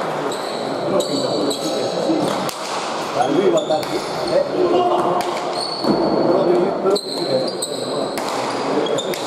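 A hard ball smacks against a wall and floor, echoing in a large hall.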